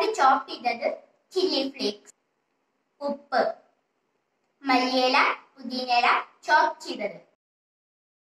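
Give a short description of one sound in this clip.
A boy speaks with animation, close by.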